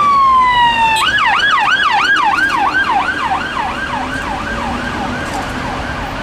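A siren yelps rapidly close by.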